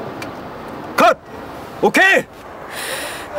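A young man laughs briefly, close by.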